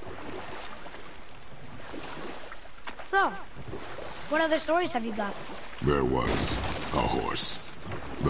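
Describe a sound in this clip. Oars splash in calm water as a boat is rowed.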